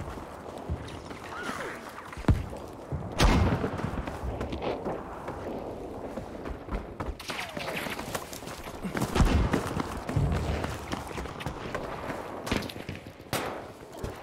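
Footsteps thud quickly on wood and stone.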